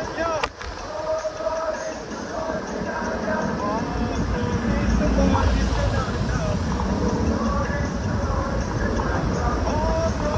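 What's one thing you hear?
A vehicle engine hums close by.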